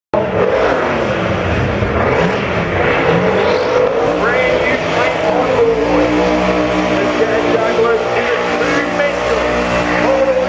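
A large crowd cheers and whistles outdoors.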